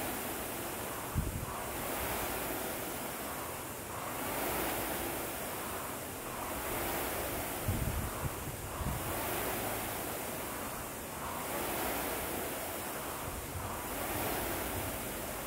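A rowing machine's fan whooshes in a steady, repeating rhythm.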